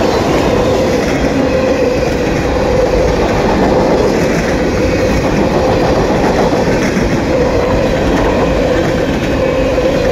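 A freight train rumbles past close by, wheels clattering on the rails.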